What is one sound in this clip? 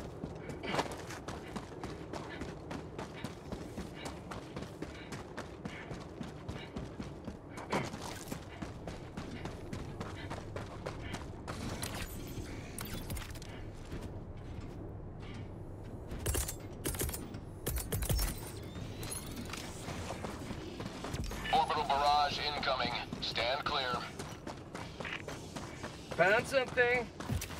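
Boots crunch on rocky ground with quick, regular steps.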